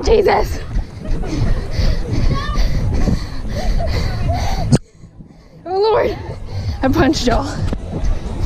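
Wind buffets loudly, as if rushing outdoors.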